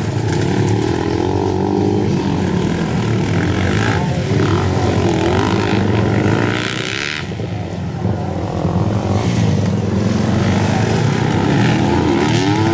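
Dirt bike engines rev and whine loudly, rising and falling in pitch.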